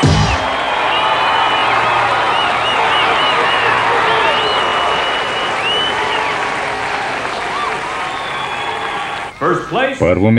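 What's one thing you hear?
A large crowd cheers and whistles in an echoing hall.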